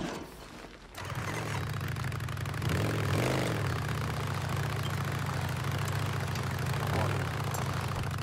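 A motorcycle engine starts and runs with a steady low rumble.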